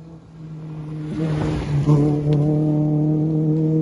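Gravel crunches and sprays under a car's tyres.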